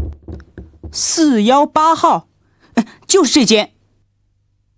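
A young man speaks in a surprised voice.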